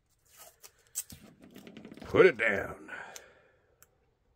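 Adhesive tape crinkles and peels with a soft ripping sound.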